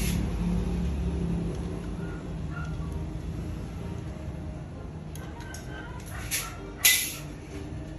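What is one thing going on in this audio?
Pliers grip and bend a small piece of metal with faint scraping clicks.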